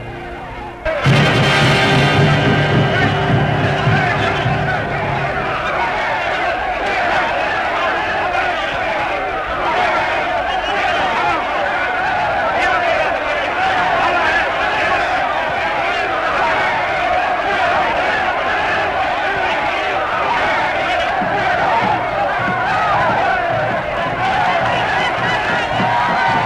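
A crowd of men and women chant and shout loudly.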